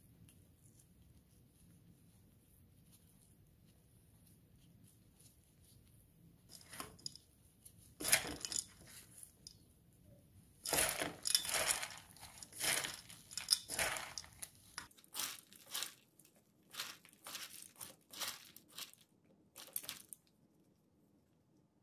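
Gloved hands tear cooked meat apart.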